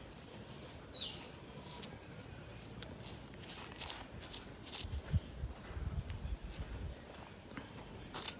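A plastic spoon scrapes and stirs through loose soil in a plastic tub.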